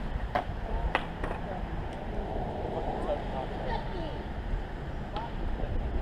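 Skateboard wheels roll and clack on concrete in the distance.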